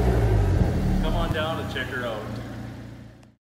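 A man speaks cheerfully nearby.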